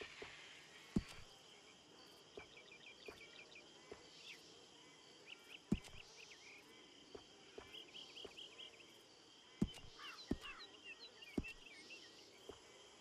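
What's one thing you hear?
Soft menu clicks tick as selections change.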